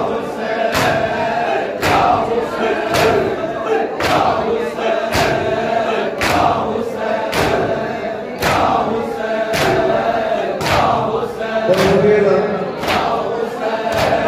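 A crowd of young men chants loudly together in rhythm.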